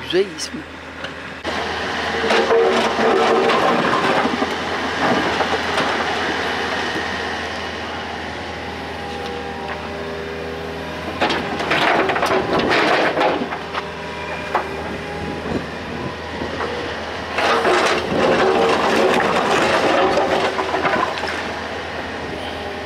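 An excavator engine rumbles steadily.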